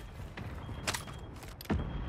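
Footsteps clatter on a metal floor.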